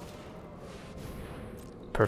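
A magical whoosh sweeps past.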